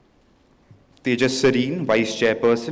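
A man speaks over a loudspeaker in a large hall.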